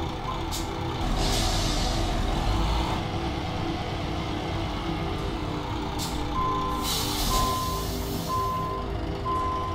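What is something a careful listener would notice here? Air brakes release with a loud hiss.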